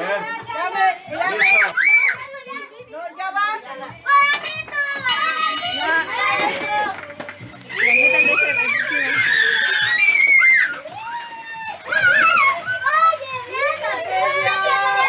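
Children shout and cheer excitedly nearby.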